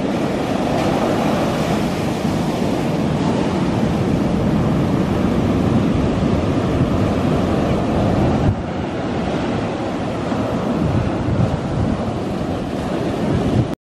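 Ocean waves crash and roll onto the shore.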